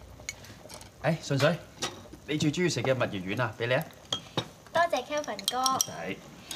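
A man talks casually over a meal.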